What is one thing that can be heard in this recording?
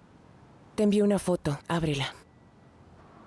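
A woman speaks briefly into a phone, close by.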